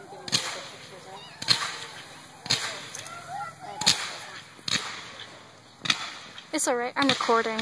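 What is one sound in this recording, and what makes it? Fireworks crackle and fizz as sparks shower down.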